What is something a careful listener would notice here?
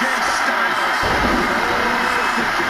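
A body slams onto a wrestling mat with a heavy thud.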